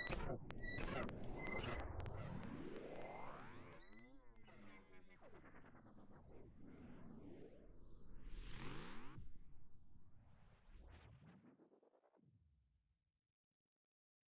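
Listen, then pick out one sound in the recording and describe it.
An electronic synthesizer makes harsh, sweeping and warbling tones that rise and fall, then fade away.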